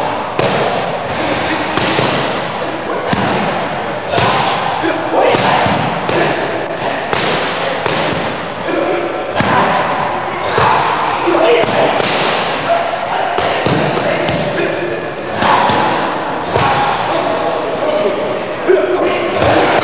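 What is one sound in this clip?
Boxing gloves thud against punch mitts in quick bursts.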